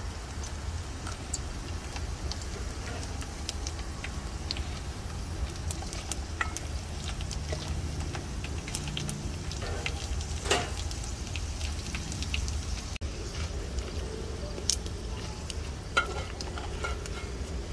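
Pieces of chicken sizzle and crackle in hot oil in a wok.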